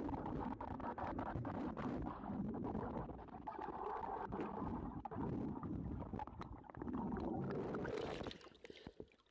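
Water churns and rumbles, muffled underwater.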